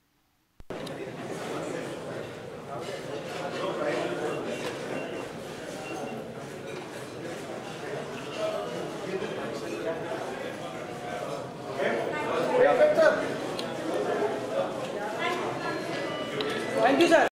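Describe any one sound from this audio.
A crowd of men and women chatters.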